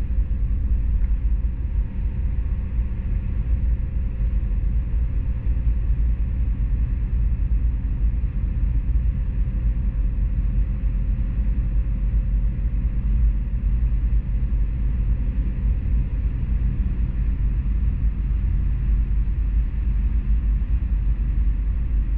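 Tyres roar steadily on the road at highway speed, heard from inside a car.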